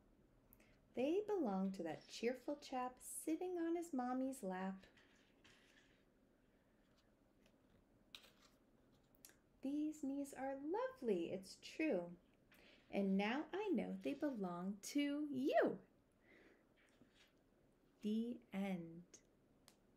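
A woman reads aloud calmly and expressively, close to a microphone.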